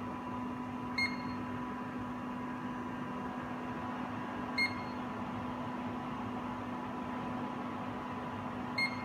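A machine gives short, high beeps, three times.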